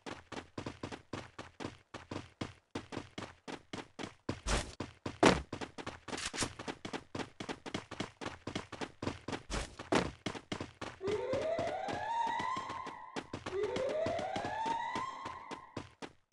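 Footsteps run quickly and steadily on hard ground.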